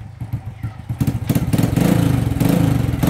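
A motorcycle engine revs up louder.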